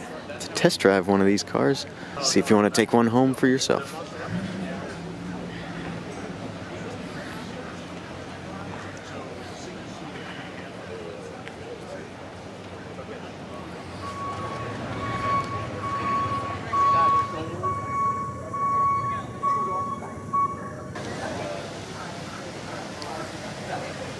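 A crowd of people chatter quietly in the distance outdoors.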